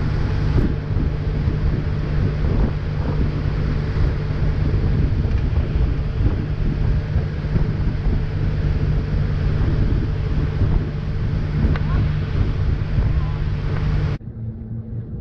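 Water churns and rushes in the boat's wake.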